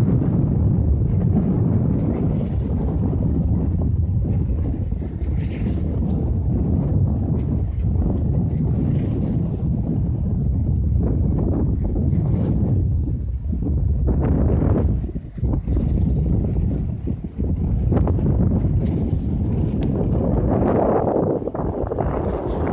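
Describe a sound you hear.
Strong wind buffets and rumbles outdoors.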